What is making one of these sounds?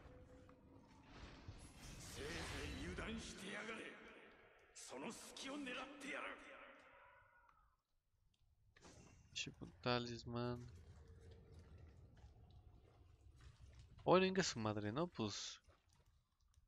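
A young man talks close to a microphone, with animation.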